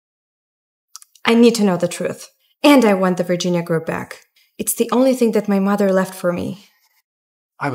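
A young woman speaks quietly and with emotion, close by.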